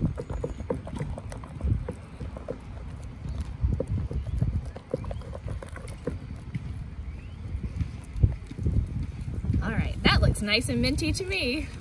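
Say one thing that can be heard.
A spoon stirs through thick foamy paint in a plastic bowl.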